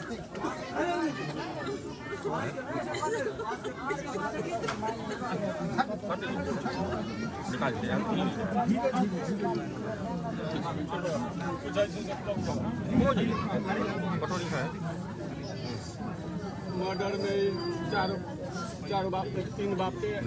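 A man speaks calmly and consolingly close by.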